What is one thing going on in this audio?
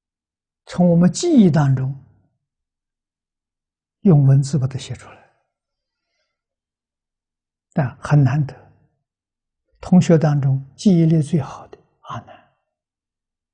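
An elderly man speaks calmly and slowly into a close microphone, with pauses between phrases.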